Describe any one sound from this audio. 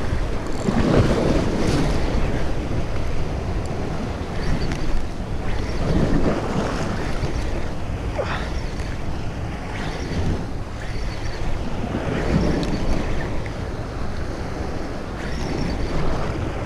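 Waves splash against rocks close by.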